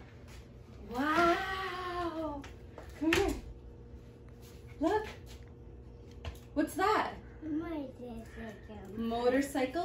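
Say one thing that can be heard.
A young child squeals and chatters excitedly.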